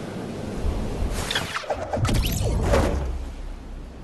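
A glider snaps open with a sudden whoosh.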